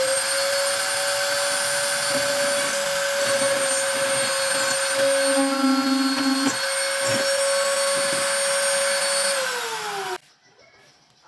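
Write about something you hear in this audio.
A cordless impact driver whirs steadily, then winds down.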